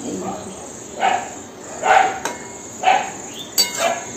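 A metal spatula scrapes and stirs food in a pan.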